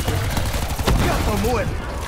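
An explosion bursts with a loud boom.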